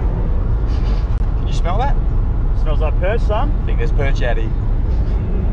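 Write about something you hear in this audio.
A middle-aged man talks calmly up close.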